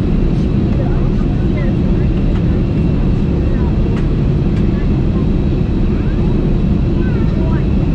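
Jet engines roar in a steady, deep rumble inside an airliner cabin.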